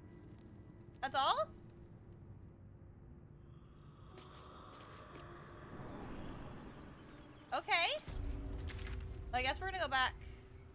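A young woman speaks excitedly into a close microphone.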